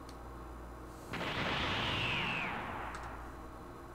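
A loud rushing whoosh sweeps past and fades.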